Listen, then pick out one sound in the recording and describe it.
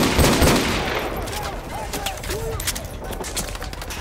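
Pistol shots crack in quick succession.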